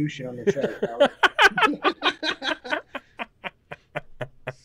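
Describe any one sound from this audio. A man laughs heartily over an online call.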